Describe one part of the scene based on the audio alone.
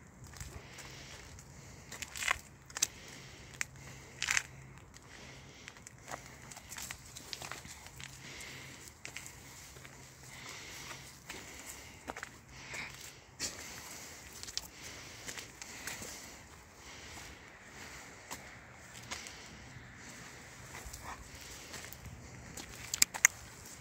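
A dog's leash jingles and clicks.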